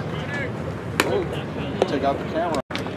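A baseball smacks into a catcher's leather mitt.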